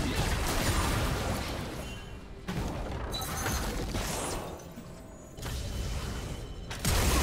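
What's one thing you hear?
Game spell effects burst and crackle during a fight.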